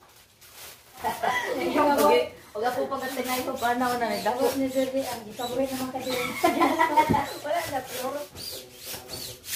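Young women laugh together.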